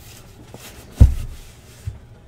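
A cardboard box thumps down onto a table.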